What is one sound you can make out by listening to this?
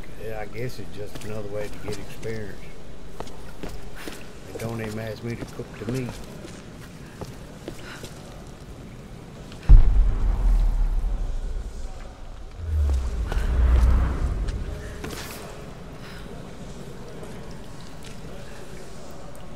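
Footsteps crunch on stony ground.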